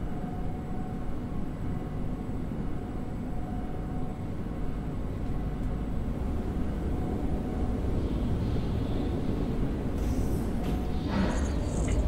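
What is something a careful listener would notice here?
An elevator hums steadily as it rides.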